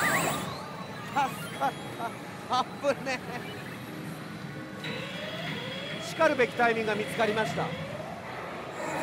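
A man with a headset microphone talks excitedly, close up.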